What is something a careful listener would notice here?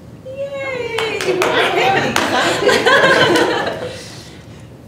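A small audience laughs.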